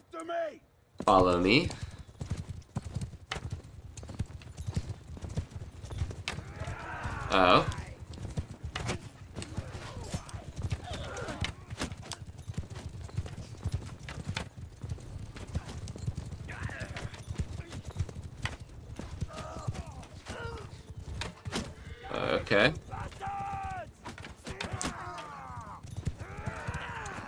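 Horses gallop, hooves thudding steadily.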